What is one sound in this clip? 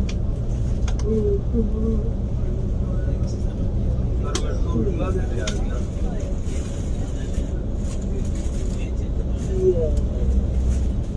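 A man talks on a phone close by.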